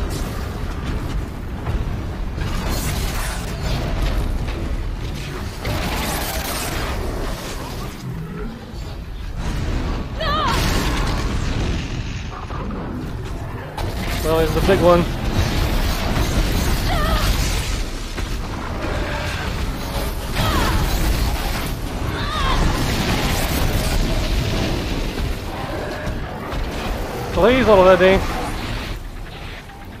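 Explosions and fiery blasts boom repeatedly.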